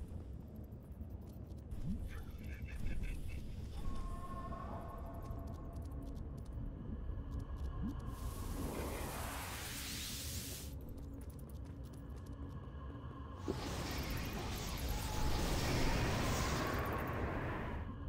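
Flames burst and roar with a rushing whoosh.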